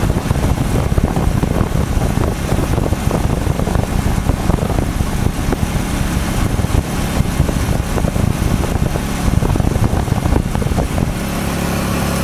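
Wind buffets loudly against a moving vehicle.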